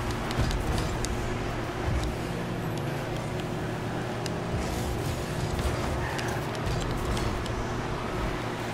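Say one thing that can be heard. A game car's engine hums steadily.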